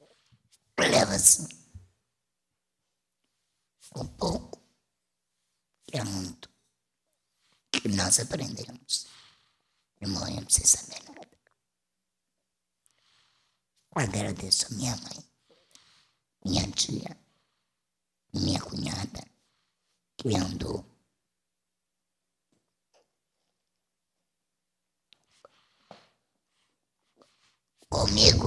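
A woman speaks into a microphone in short bursts with pauses, heard over a loudspeaker in a room.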